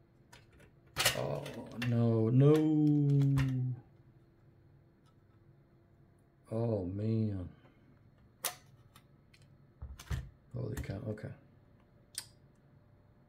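Hard plastic parts click and clatter as they are handled.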